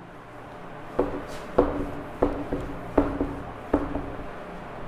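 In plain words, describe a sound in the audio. A cloth wipes across a whiteboard in quick strokes.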